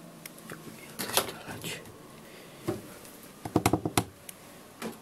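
A plastic drawer slides and clicks shut.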